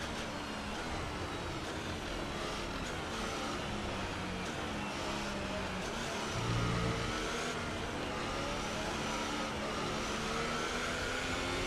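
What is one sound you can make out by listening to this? A racing car engine whines loudly, its pitch rising and falling as the car speeds up, brakes and shifts gears.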